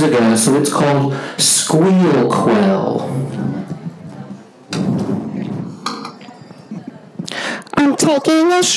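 A man speaks with animation to an audience through a loudspeaker.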